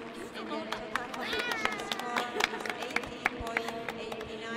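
Young people clap their hands close by.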